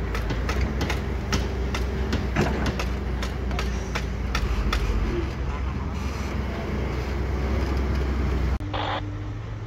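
A diesel hydraulic excavator engine rumbles.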